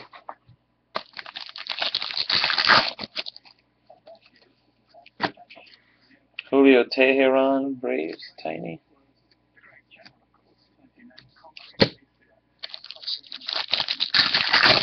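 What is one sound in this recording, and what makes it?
Trading cards slide and flick against each other as they are shuffled.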